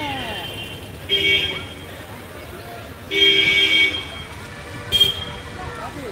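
Vehicle horns honk in short blasts.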